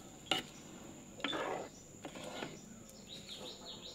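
A spoon stirs thick food in a clay pot.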